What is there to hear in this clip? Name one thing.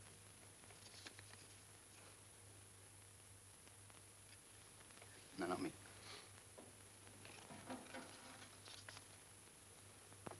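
Paper rustles as slips are drawn from a box.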